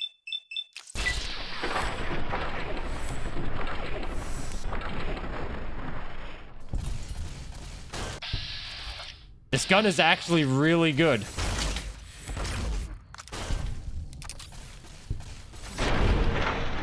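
Sci-fi energy weapon blasts zap and crackle.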